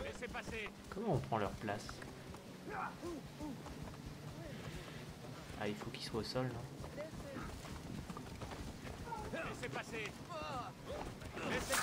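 Horse hooves thud on a dirt road.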